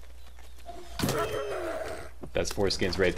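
A coyote yelps in pain.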